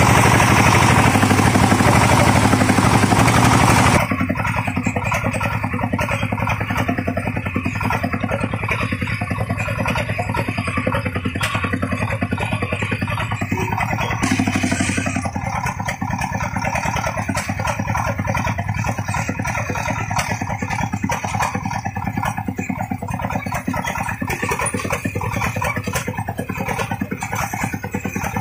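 A small diesel engine chugs loudly and steadily close by.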